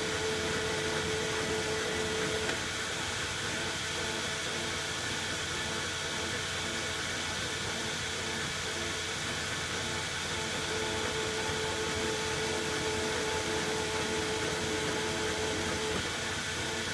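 A cutting tool whines as it cuts a metal thread.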